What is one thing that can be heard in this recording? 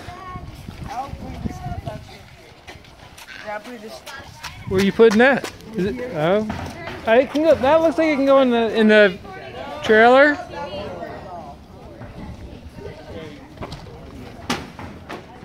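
Children chatter and talk around outdoors.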